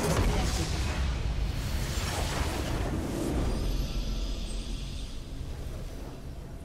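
A huge crystal explodes with a deep booming rumble.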